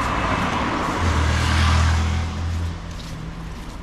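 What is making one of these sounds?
A car's engine hums low as it passes.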